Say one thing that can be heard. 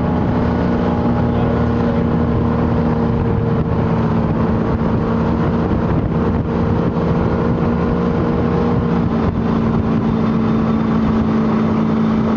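A motorboat engine drones steadily at speed.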